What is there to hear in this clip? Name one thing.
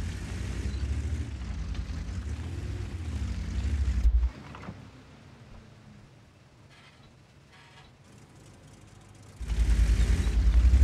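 A tank engine rumbles deeply and loudly.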